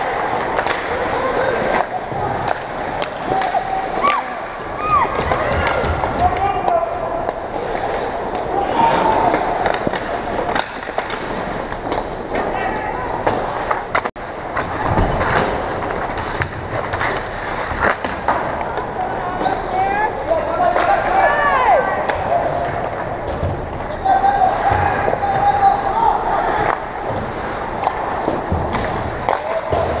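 Skates scrape and hiss across the ice in an echoing rink.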